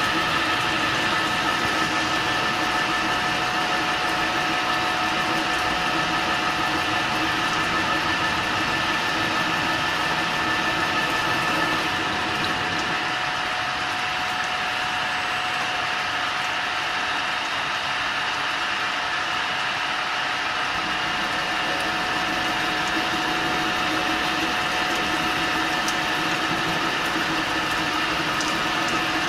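A milling machine whines steadily as its cutter grinds into metal.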